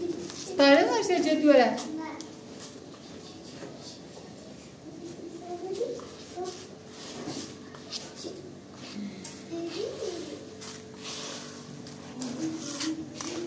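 Hands stir rice in water in a plastic bowl, swishing and rustling.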